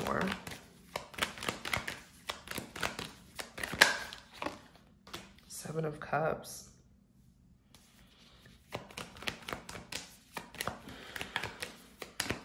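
Playing cards riffle and slap as they are shuffled by hand.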